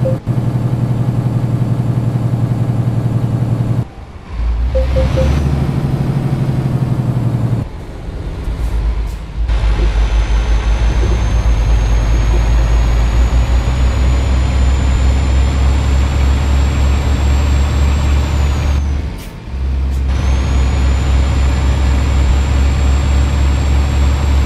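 A truck engine drones steadily, dropping away briefly between gears.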